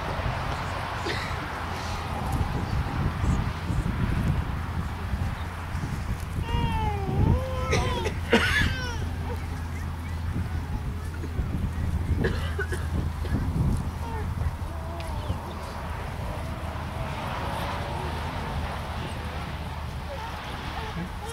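Wind rumbles steadily across the open ground.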